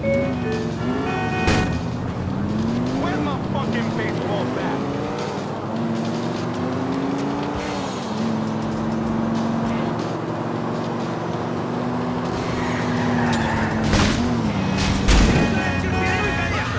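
A car engine hums and revs steadily as the car drives along.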